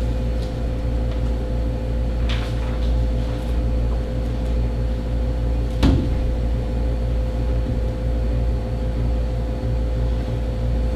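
An air conditioner hums steadily.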